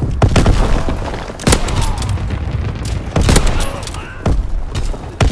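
Sniper rifle shots crack loudly, one after another.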